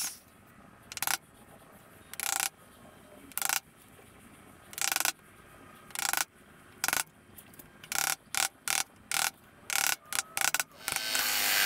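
A mallet taps a chisel in sharp knocks.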